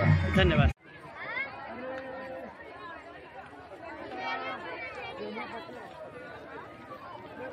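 A crowd of women and men chatter and call out outdoors.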